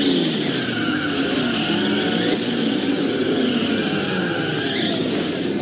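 A car engine roars at high revs.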